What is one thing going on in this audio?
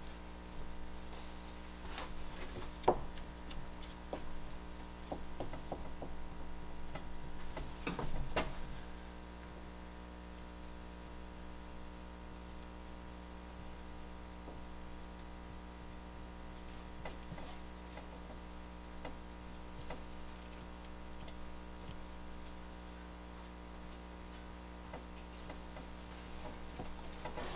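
A man scrapes and smooths soft clay by hand.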